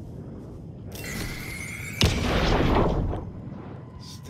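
Sparks burst with a loud crackling hiss.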